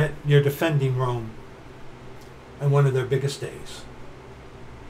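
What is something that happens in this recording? A middle-aged man speaks calmly and close by, as if through a computer microphone.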